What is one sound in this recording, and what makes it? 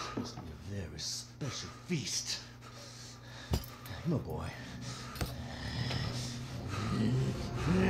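An elderly man speaks close by in a low, menacing voice.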